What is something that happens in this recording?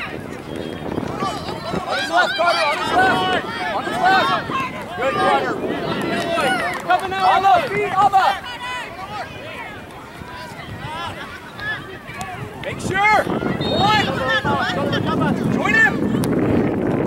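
Spectators on the sidelines shout and cheer outdoors.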